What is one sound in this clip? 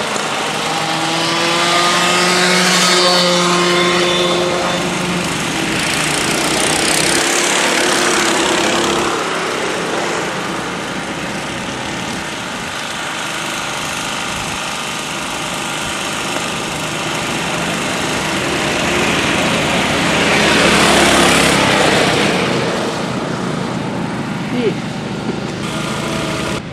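Go-kart engines buzz loudly and whine as karts race past.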